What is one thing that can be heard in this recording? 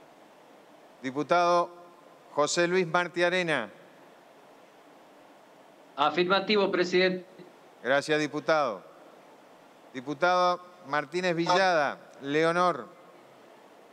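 An elderly man speaks calmly through a microphone in short phrases with pauses.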